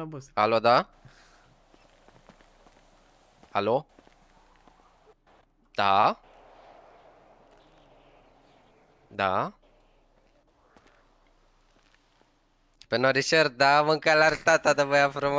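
A young man talks with animation into a close microphone, in short bursts.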